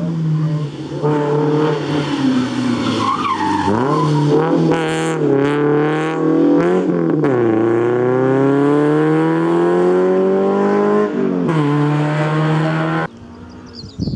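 A rally car engine roars close by, revving hard and rising and falling in pitch as it shifts gears.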